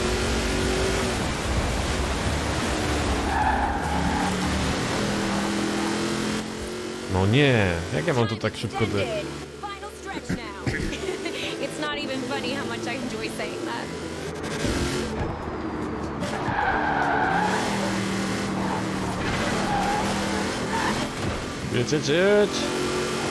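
A racing car engine roars at high revs.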